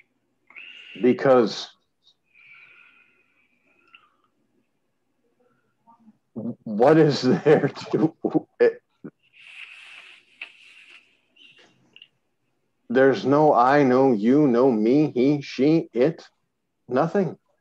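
A middle-aged man speaks calmly and with animation into a microphone, heard as over an online call.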